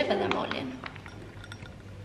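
A cat crunches dry food.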